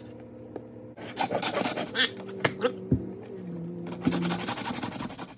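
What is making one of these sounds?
A hacksaw cuts through a plastic sheet with a harsh rasping.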